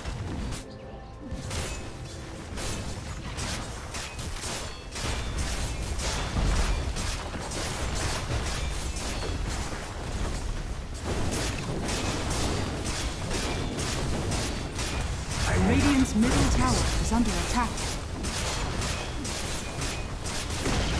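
Weapons clash and magic blasts crackle in a busy battle.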